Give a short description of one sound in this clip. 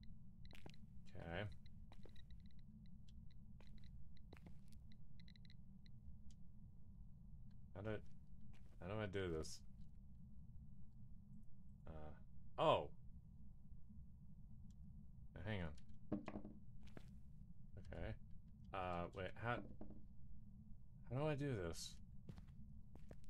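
A young woman talks in short bursts into a close microphone.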